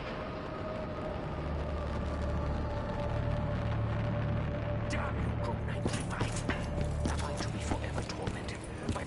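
A rocket launches with a deep, roaring rumble.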